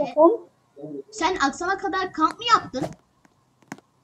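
A young boy talks with animation, close to a microphone.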